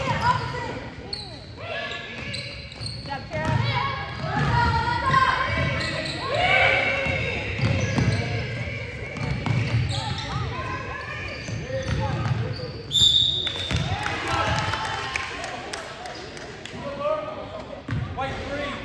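Teenage girls and spectators call out and cheer in an echoing gym.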